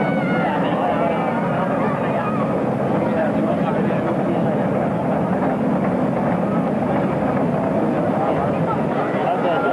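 A roller coaster train clanks and rattles steadily up its track.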